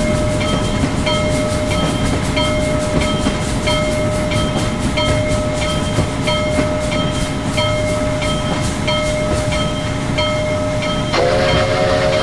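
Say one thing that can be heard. A steam locomotive chuffs in a quick, steady rhythm.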